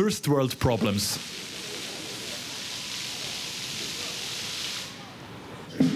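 Fountain jets splash steadily on wet pavement.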